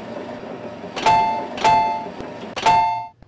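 A vending machine beeps several times.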